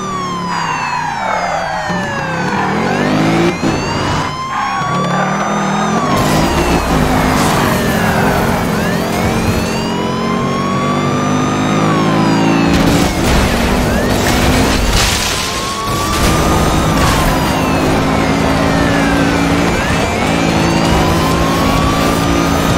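A car engine roars and revs as it accelerates hard.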